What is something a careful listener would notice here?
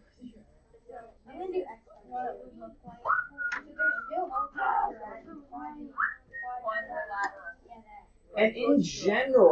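Children talk and chatter in a room.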